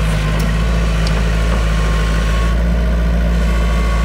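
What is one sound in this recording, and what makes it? Excavator tracks clank and squeal as the machine moves.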